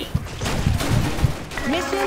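Rapid gunshots fire nearby.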